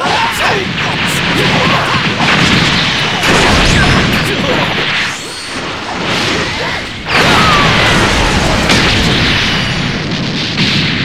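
Energy blasts whoosh and crackle in a fight.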